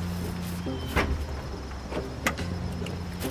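A car trunk lid thumps shut.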